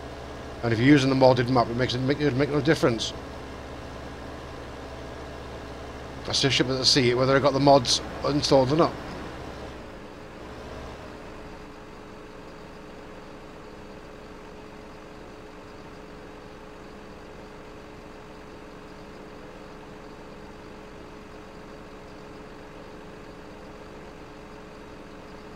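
A heavy diesel engine hums steadily.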